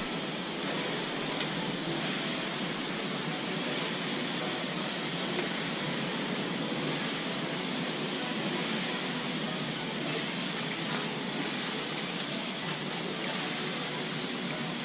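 A sprayer hisses steadily as it sprays a fine mist.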